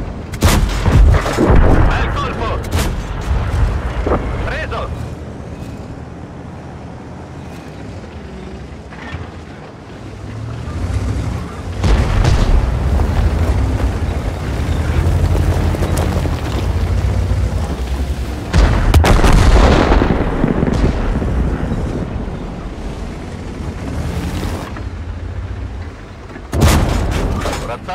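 Tank guns fire with loud booming blasts.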